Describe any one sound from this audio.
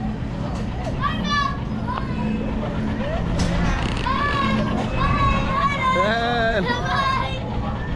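A young person talks nearby.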